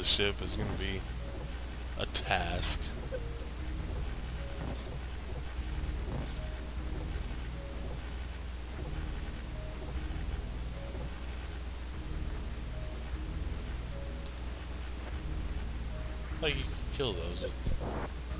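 Game music plays steadily with a low, droning melody.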